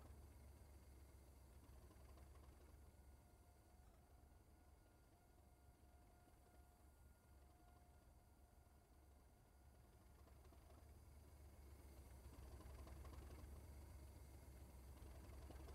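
A diesel locomotive engine rumbles low and steady, growing louder toward the end.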